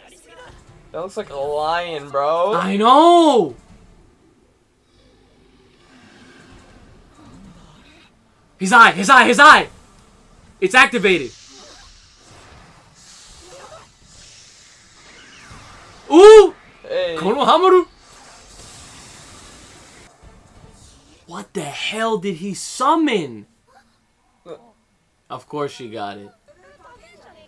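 A young man exclaims and talks excitedly close by.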